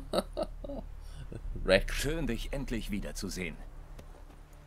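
A man speaks warmly and with animation, close by.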